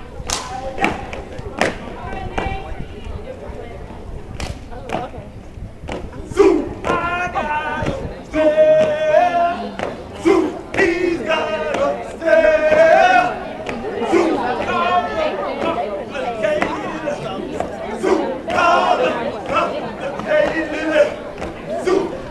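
Feet stomp and hands clap in sharp beats on hard ground.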